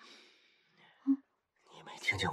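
A man groans weakly, close by.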